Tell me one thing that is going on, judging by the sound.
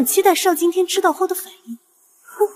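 A young woman speaks quickly and with animation, close by.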